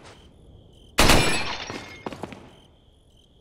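A gun fires a loud shot that echoes away.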